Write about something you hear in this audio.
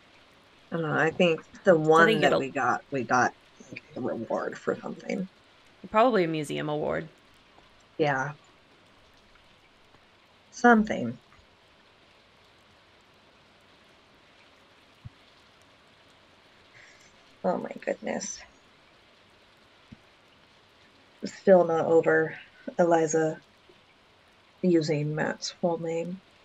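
A young woman talks casually into a microphone, in bursts with pauses.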